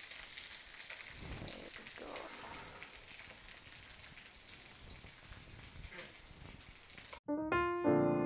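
Metal tongs clink against a pan.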